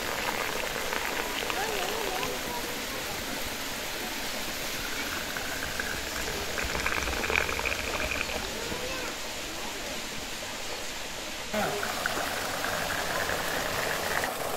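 Tea pours from a kettle into glasses with a thin trickle.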